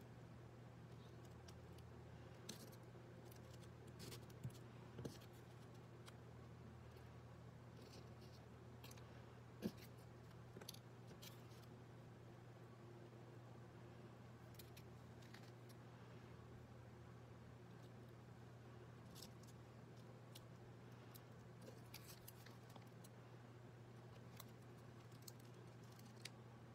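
Paper pieces rustle and tap as a hand arranges them on a table.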